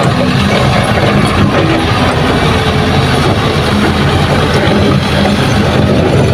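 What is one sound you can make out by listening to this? Tyres crunch over rough dirt and stones.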